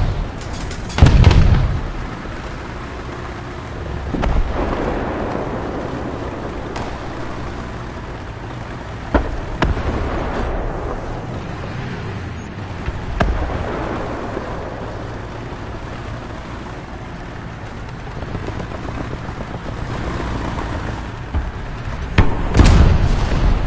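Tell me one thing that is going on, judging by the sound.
A tank gun fires with loud booms.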